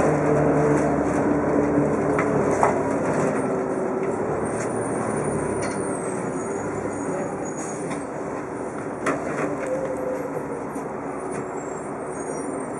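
Small rattles and knocks come from inside the bus.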